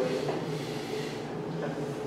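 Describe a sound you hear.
A man gulps water.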